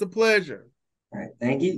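An older man speaks briefly over an online call.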